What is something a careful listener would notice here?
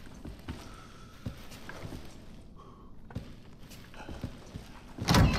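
Heavy footsteps clang on a metal floor.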